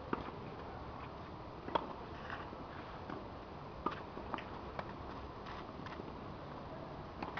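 Tennis balls pop off rackets in a steady rally.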